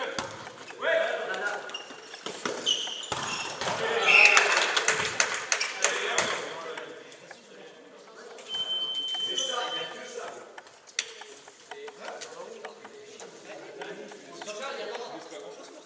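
Young players shout and call out to each other.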